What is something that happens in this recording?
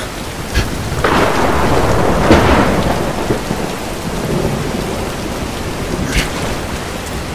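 Water rushes and roars nearby.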